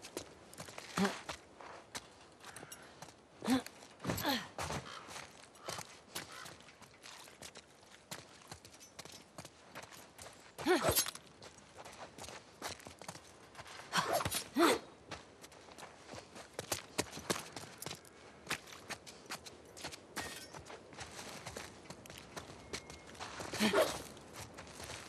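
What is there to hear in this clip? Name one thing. Footsteps crunch on wet ground and gravel.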